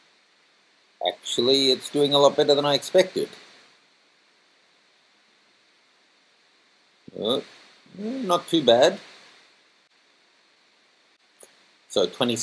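A man speaks calmly and close to a microphone, pausing between phrases.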